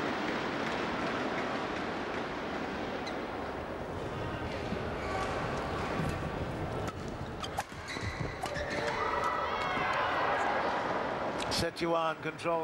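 A large crowd cheers and applauds in an echoing hall.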